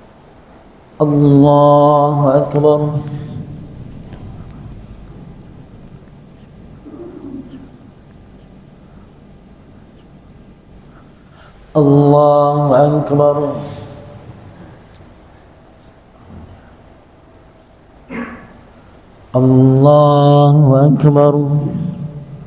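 A man chants loudly into a microphone in a large echoing hall, in long held phrases.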